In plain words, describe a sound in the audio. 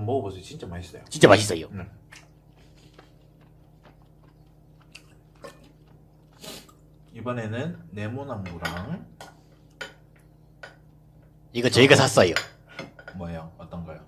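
A young man chews and slurps food close to a microphone.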